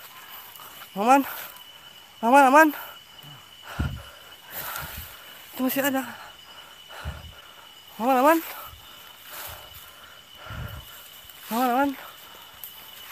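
A man calls out nearby in short, wavering cries.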